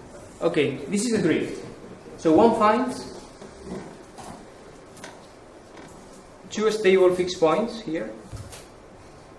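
A man lectures in a room with a slight echo, speaking calmly in short phrases.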